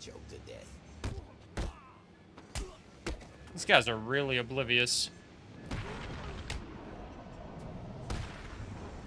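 Punches land with heavy thuds during a fight.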